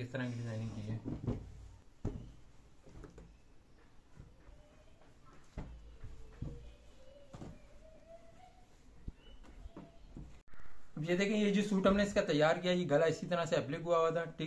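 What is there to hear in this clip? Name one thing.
Fabric rustles as hands handle cloth.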